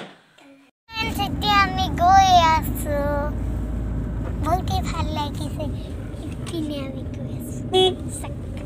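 A car engine hums steadily from inside the car.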